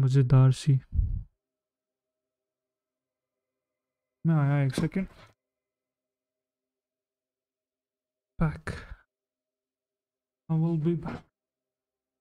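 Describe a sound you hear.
A young man speaks in short bursts into a close microphone, with pauses between.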